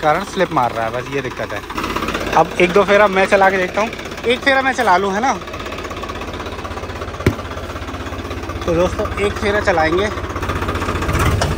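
A tractor engine idles steadily.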